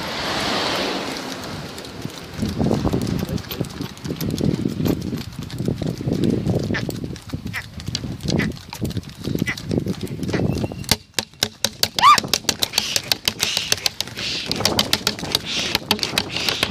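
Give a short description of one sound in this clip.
Oxen hooves clop steadily on a paved road.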